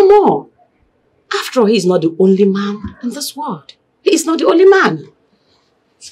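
A woman speaks sharply, close by.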